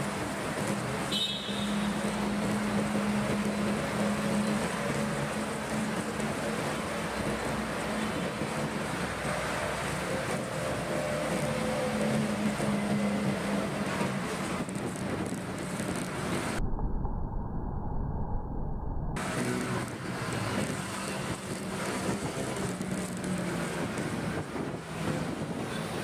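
Wind rushes past the microphone as the motorbike moves.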